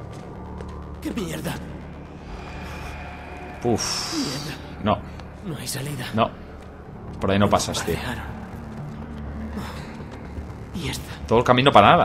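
A man in a game exclaims in dismay.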